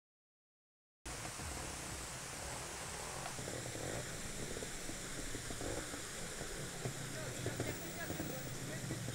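A waterfall rushes nearby.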